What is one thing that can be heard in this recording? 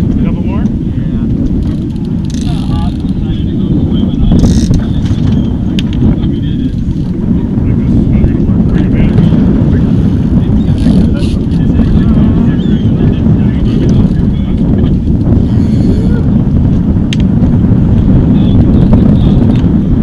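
Men talk and call out faintly over the wind.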